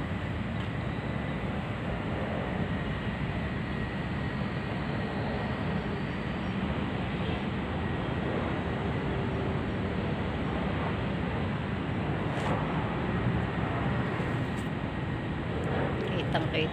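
Wind gusts steadily across the microphone outdoors.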